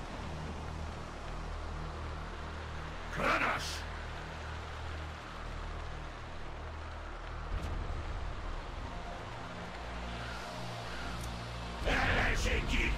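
Tank engines rumble steadily.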